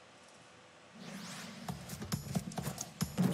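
Lively game music and sound effects start up suddenly and play on loudly.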